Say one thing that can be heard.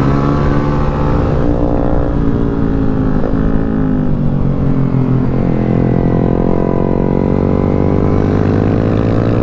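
A motorcycle engine roars loudly up close, its pitch rising and falling as the gears shift.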